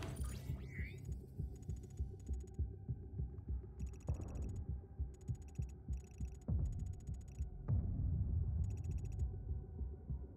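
Soft electronic blips tick in quick bursts.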